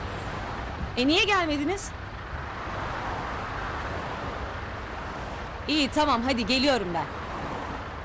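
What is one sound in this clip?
A young woman speaks anxiously into a phone.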